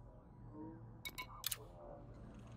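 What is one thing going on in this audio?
Short electronic clicks sound as a menu option is chosen.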